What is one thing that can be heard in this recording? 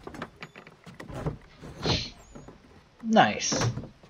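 Wooden stocks creak and thud open.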